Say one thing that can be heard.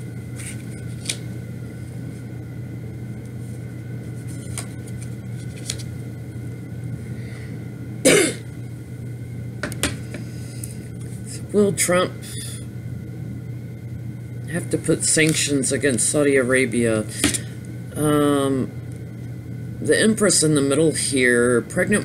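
Cards tap and slide softly on a table.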